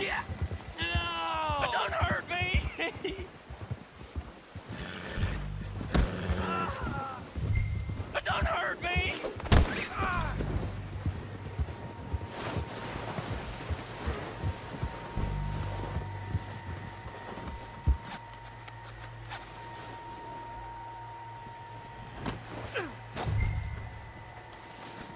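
Hooves thud through deep snow.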